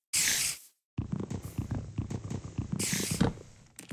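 Wooden blocks crack and break in quick succession.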